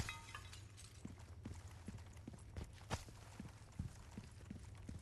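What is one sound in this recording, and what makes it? Footsteps thud on a stone floor.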